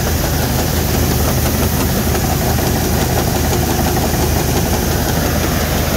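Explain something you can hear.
A grain auger runs, churning grain.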